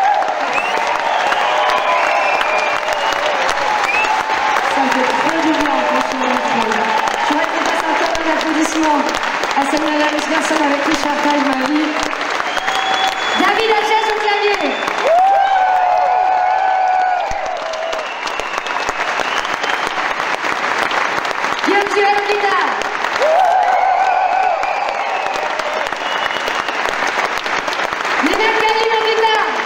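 A band plays guitars, keyboards and drums through loudspeakers.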